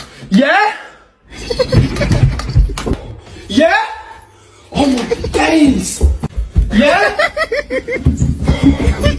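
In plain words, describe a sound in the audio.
A young man speaks with animation, close to the microphone.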